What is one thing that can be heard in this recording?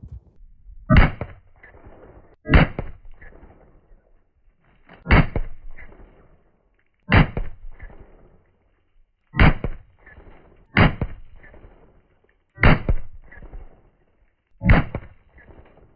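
Gunshots crack one after another, each followed by a short echo.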